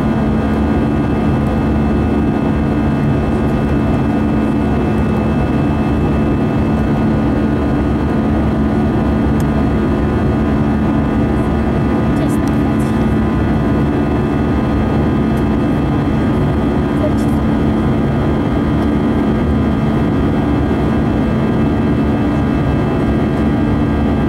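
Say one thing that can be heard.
An airplane's engines drone steadily, heard from inside the cabin.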